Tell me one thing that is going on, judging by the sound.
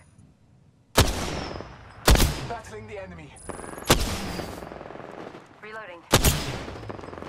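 Rifle shots ring out one at a time, with a sharp crack and a short echo.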